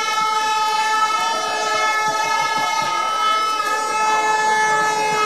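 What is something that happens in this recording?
A large crowd chants and sings loudly in unison.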